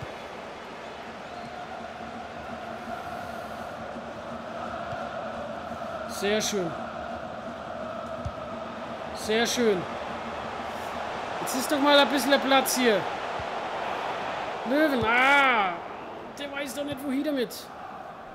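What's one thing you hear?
A large stadium crowd murmurs and chants steadily.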